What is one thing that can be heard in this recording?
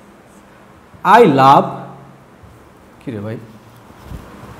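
A man speaks briefly and loudly, close by.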